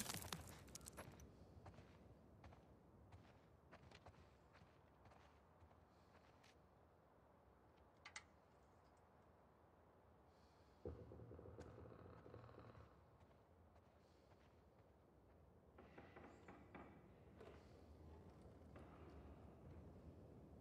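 Footsteps shuffle softly on a hard floor.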